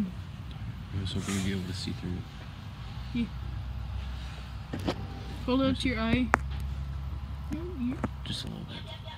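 A teenage boy talks close by.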